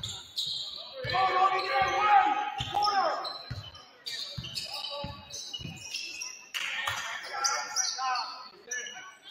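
Young women shout calls across the court.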